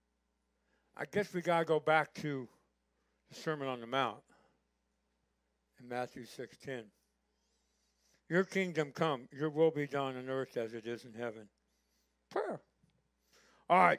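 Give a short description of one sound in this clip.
A middle-aged man speaks calmly and clearly through a microphone.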